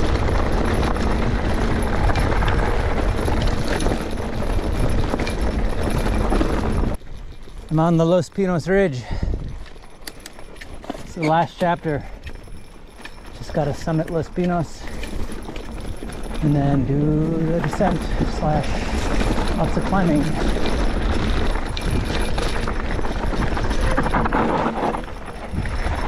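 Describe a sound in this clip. Bicycle tyres crunch and rattle over a rough gravel track.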